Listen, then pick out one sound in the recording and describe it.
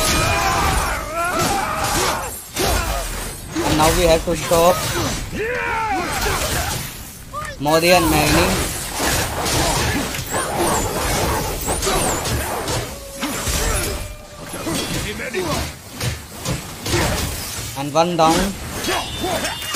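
Flames roar.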